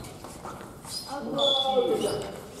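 Young people call out and chatter in an echoing hall.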